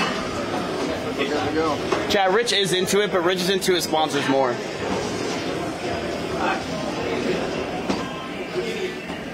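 A treadmill belt whirs steadily.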